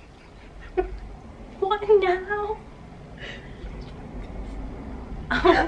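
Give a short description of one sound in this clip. A young woman laughs behind her hand.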